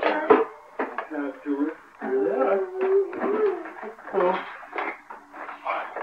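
A woman talks nearby in a lively, sing-song voice.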